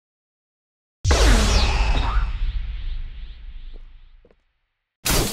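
A heavy booming impact rumbles and slowly fades.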